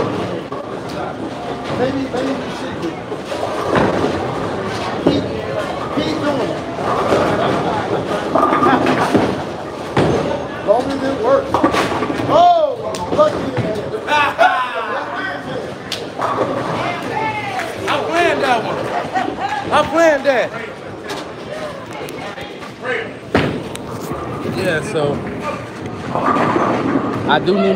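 Voices chatter and echo in a large, noisy hall.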